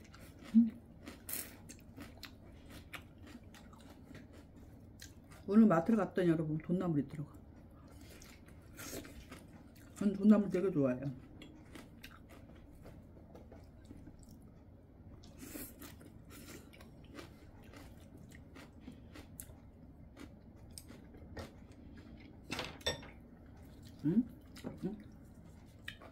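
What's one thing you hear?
Chopsticks click against dishes.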